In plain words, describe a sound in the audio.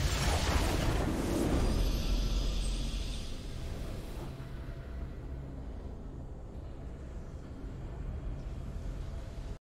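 Triumphant victory music plays.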